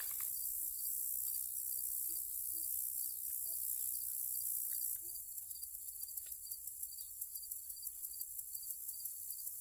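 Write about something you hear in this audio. Paper rustles in a person's hands.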